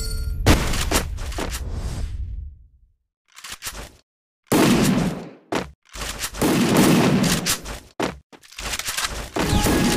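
A shotgun fires in short bursts.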